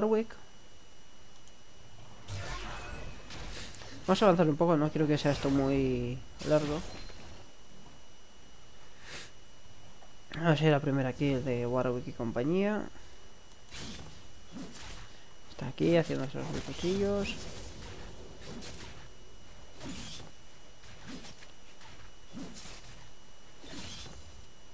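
Sharp hits and magic blasts crack during a fight in a video game.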